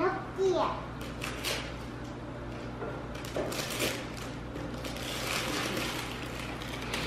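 Wrapping paper rustles and crinkles.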